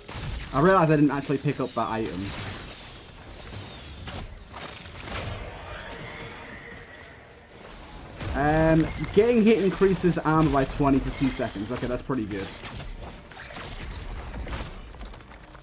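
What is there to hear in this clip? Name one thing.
Magic spells whoosh and crackle.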